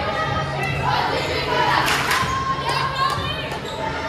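A group of young girls cheer loudly together.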